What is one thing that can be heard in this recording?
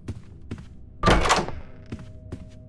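A wooden door swings open with a loud creak.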